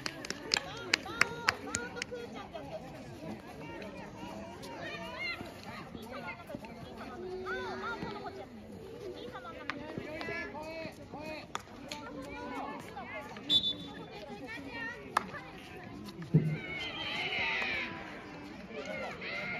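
Young women call out and shout to each other across an outdoor field.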